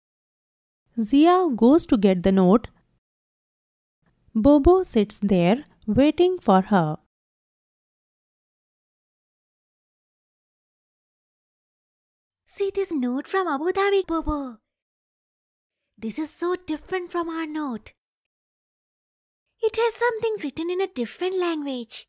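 A young girl speaks cheerfully, in short bursts with pauses.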